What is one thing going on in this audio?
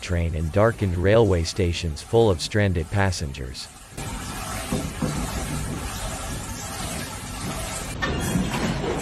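Water bubbles and splashes in a fish tank.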